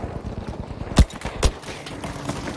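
A rifle fires two loud shots.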